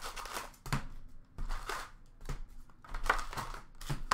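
Cardboard card packs rustle and tap as hands handle them.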